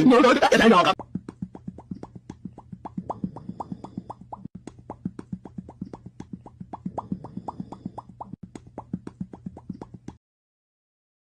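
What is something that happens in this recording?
A cat makes quick, regular popping sounds.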